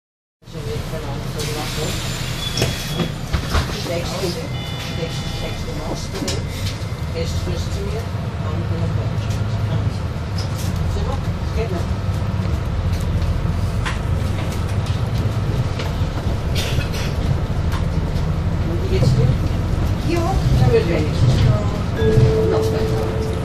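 A bus engine rumbles low and steady as the bus pulls away and drives along.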